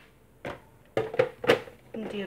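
A plastic mixing bowl knocks against a hard counter.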